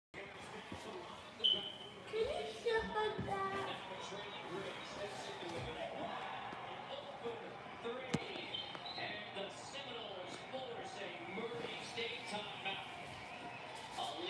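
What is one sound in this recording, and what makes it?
A television plays a sports broadcast in the room.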